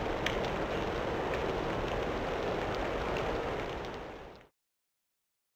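Water drips and patters steadily onto the floor, then fades away.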